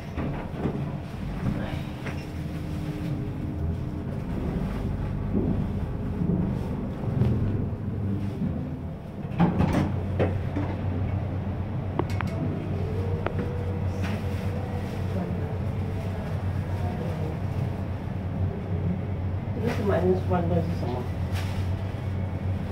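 An escalator hums steadily in a large echoing hall.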